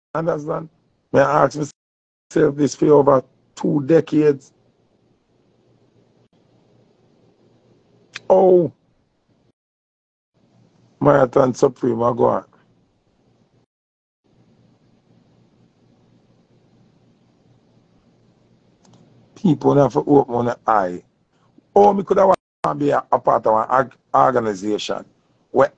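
A man talks casually and close up, in bursts with pauses.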